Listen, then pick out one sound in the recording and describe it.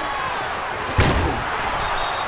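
Players collide hard in a tackle.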